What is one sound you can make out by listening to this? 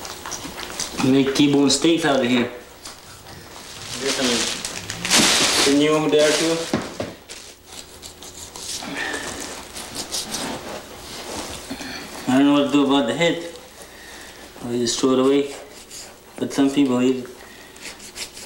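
A man's voice calls out loudly in short bursts nearby.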